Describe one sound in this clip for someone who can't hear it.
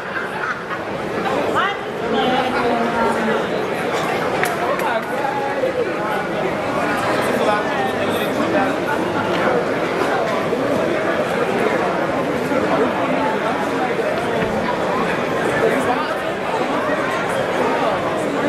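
A man speaks energetically into a microphone, heard over loudspeakers in a large echoing hall.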